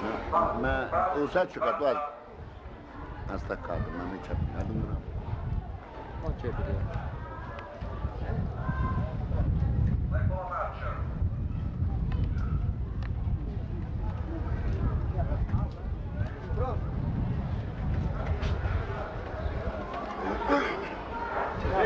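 A crowd of men and women murmurs and talks nearby outdoors.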